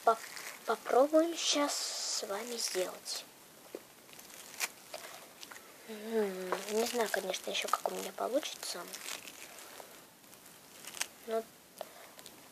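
A young girl speaks softly and close up.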